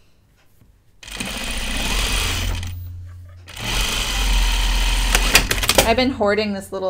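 A sewing machine hums in quick bursts of stitching.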